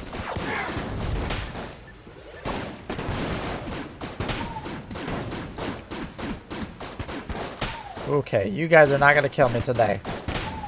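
Rapid gunfire crackles and pops.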